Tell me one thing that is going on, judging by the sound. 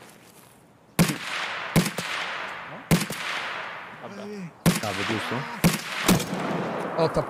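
Rifle shots crack loudly, one after another, with echoes rolling away.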